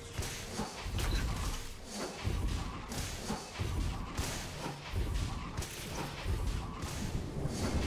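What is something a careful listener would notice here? Fantasy battle sound effects of spells and blows burst and clash.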